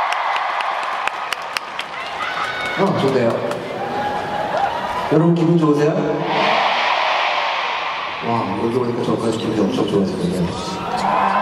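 A large crowd screams and cheers in a big echoing arena.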